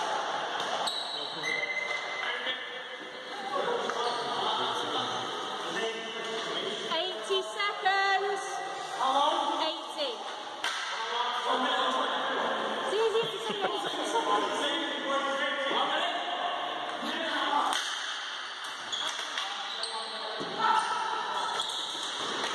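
Plastic balls and sticks clack on a hard floor in a large echoing hall.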